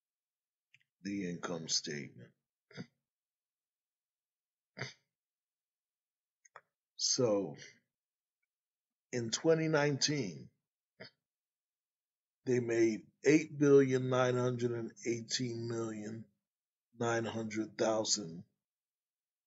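A man talks calmly into a close microphone, in short phrases with pauses.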